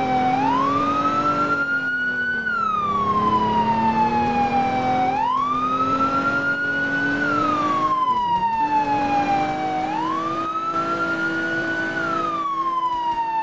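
A fire truck siren wails, rising and falling slowly over and over.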